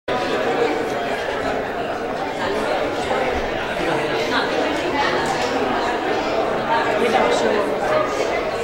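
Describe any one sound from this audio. A band plays a song on piano, guitar and drums in a large echoing hall.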